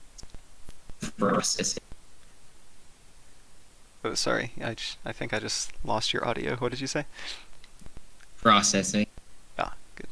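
A young man speaks calmly and closely into a microphone, in short bursts with pauses.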